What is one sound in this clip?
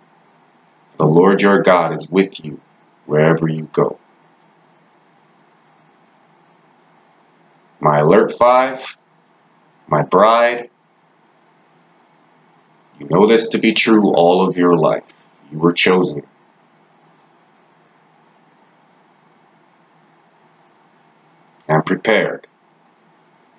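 A young man speaks calmly close to a microphone, in short bursts with pauses.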